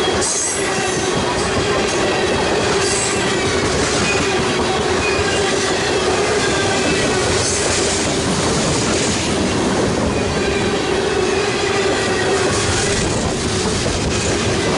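Train wheels squeal steadily against the rails.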